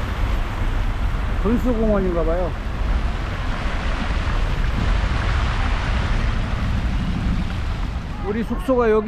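Fountain water splashes and patters steadily nearby.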